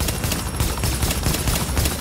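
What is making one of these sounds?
A helicopter's rotor thuds nearby.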